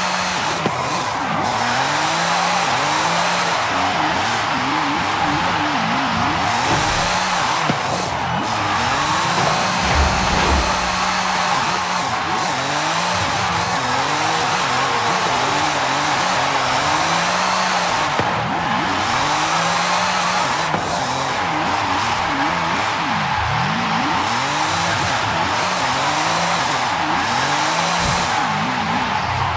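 A car engine revs up and down over and over.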